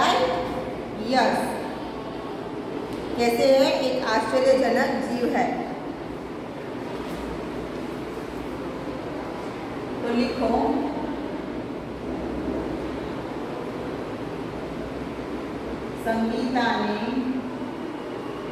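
A young woman speaks calmly and close by, with pauses.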